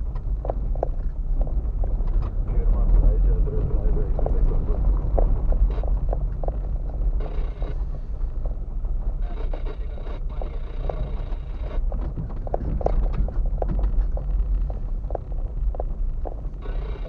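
The car's body rattles and knocks over bumps.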